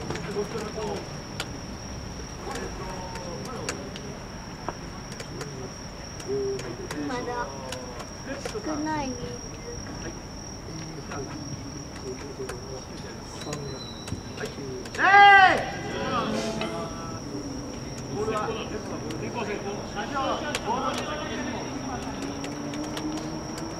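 Men talk and call out at a distance outdoors.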